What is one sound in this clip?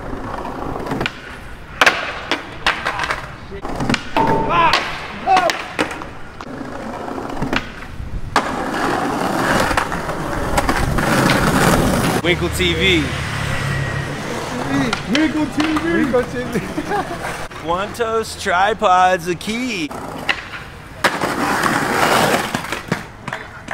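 Skateboard wheels clatter and a board slaps on concrete outdoors.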